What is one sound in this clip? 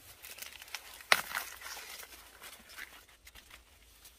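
Husks crackle and tear as a corn cob is peeled.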